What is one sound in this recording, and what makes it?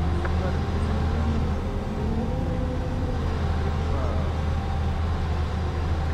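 A young man talks quietly into a microphone.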